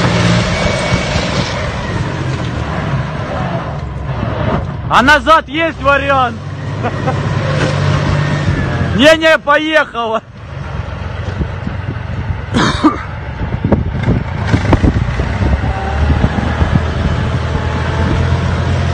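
A tracked armoured vehicle's engine rumbles loudly as it drives past.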